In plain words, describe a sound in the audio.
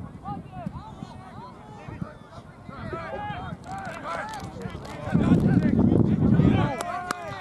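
Players shout faintly across an open field far off.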